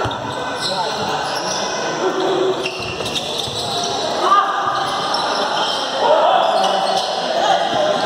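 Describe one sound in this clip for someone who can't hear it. Voices of players and spectators echo through a large indoor hall.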